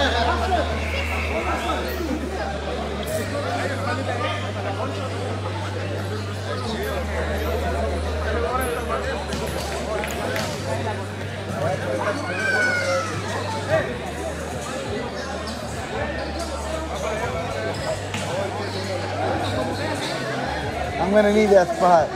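A large crowd chatters and murmurs indoors in an echoing hall.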